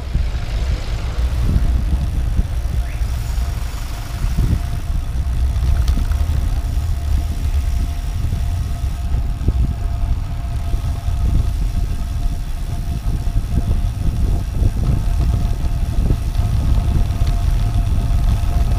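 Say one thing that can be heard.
Wind rushes loudly past, buffeting close by.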